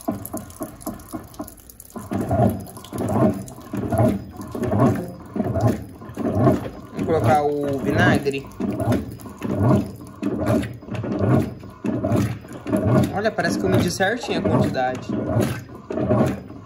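A washing machine agitates, sloshing water back and forth.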